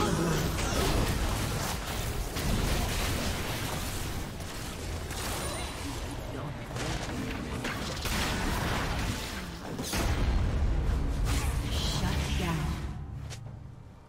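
Magic blasts crackle and whoosh as game characters fight.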